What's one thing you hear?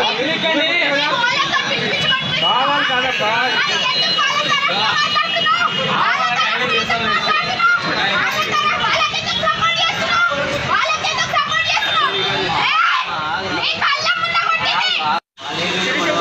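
A crowd of people talks and shouts all around.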